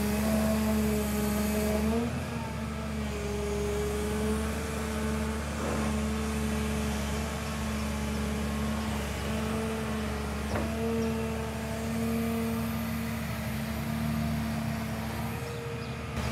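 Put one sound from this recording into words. Hydraulics whine as an excavator arm moves.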